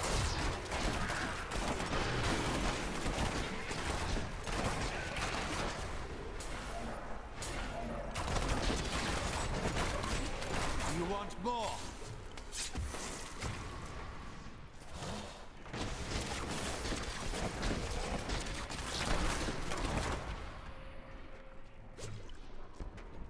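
Fiery spell blasts and crashes burst again and again.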